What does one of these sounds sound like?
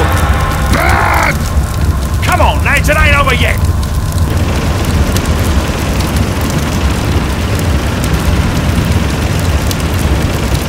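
Flames roar and crackle steadily.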